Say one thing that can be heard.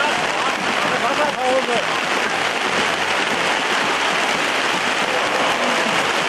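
Heavy rain pours steadily outdoors.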